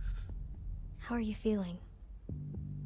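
A young woman asks a question softly.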